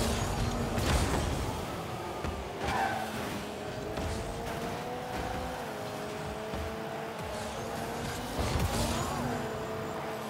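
A ball thuds against a car.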